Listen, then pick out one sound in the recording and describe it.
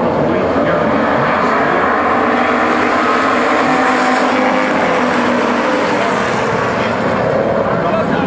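Car engines rev up and down as cars race through a turn.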